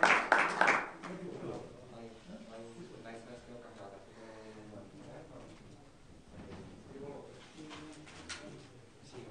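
Several men chat casually nearby.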